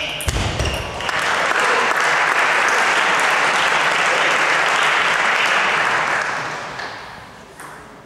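A crowd applauds loudly in an echoing hall.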